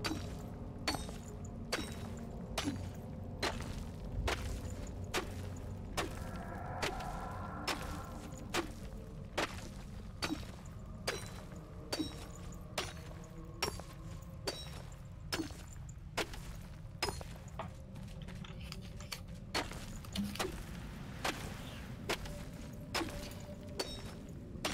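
A pickaxe strikes rock again and again in a steady rhythm.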